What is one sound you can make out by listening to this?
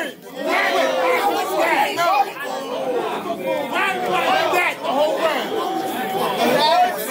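A young man raps loudly and energetically close by.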